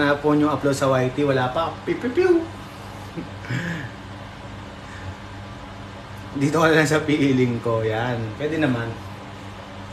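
A young man talks casually and cheerfully close to the microphone.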